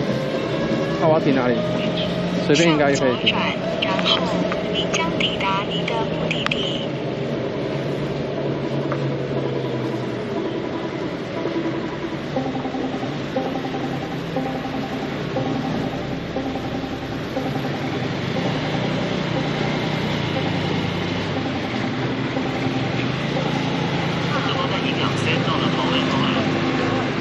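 A motorcycle engine hums steadily up close as it rides along a street.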